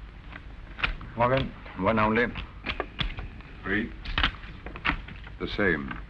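Playing cards flick onto a table.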